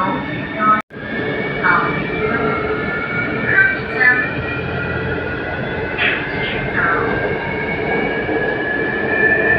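An electric motor whines and slowly rises in pitch as a train pulls away.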